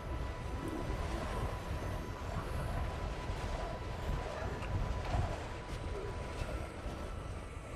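A strong wind howls and gusts through a snowstorm.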